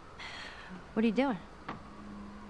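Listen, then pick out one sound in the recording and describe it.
A young girl exclaims briefly.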